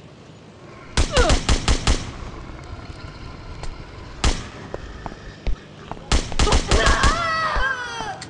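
Rapid gunshots fire in short bursts.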